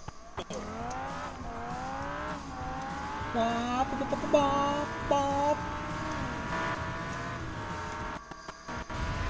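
A small racing car engine revs, rising in pitch again and again as it shifts gears.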